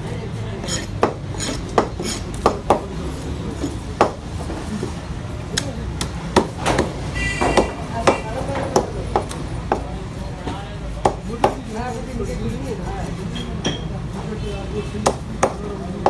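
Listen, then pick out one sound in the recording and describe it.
A cleaver chops sharply through fish on a wooden block.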